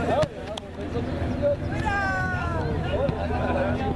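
A foot kicks a ball with a thud.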